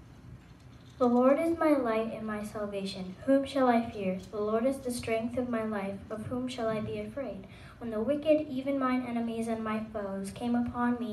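A young girl sings through a microphone.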